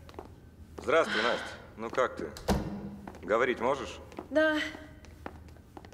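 A woman calls out with animation in a large echoing room.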